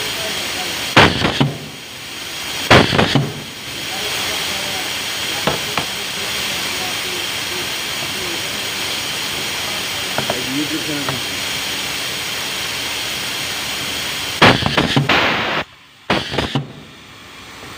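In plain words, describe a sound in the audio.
A pneumatic machine hisses in short, loud bursts of air.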